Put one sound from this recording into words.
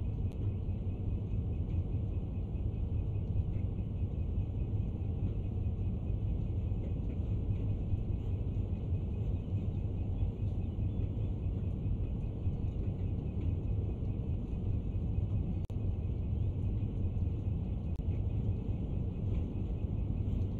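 A train engine rumbles low and steady as the train rolls along the tracks.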